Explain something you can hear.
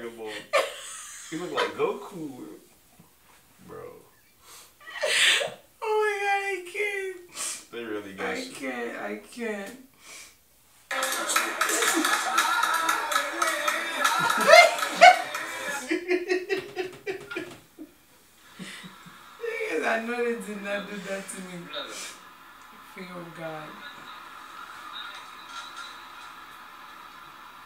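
A young man talks and chuckles close by.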